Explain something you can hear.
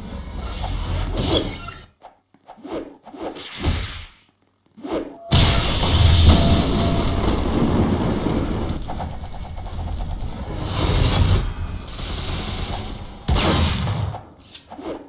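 Punches thud and whoosh in a video game fight.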